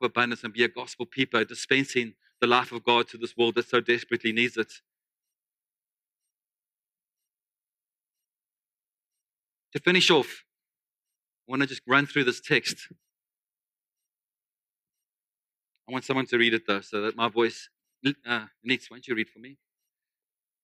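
A middle-aged man speaks calmly through a microphone in a large, echoing room, with long pauses.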